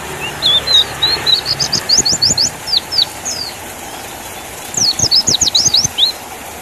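A small bird sings rapid, high chirping trills close by.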